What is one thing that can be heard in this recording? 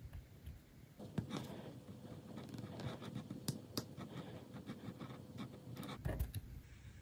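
A craft knife blade crackles softly as it cuts a curve through leather.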